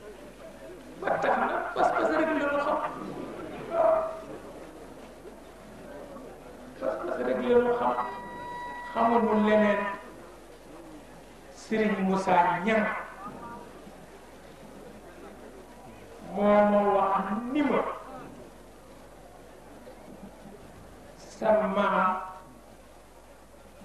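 A man speaks slowly into a microphone over a loudspeaker, in short phrases with pauses.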